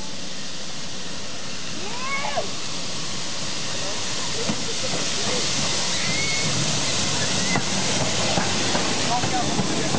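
A steam locomotive chuffs and hisses as it pulls into a station.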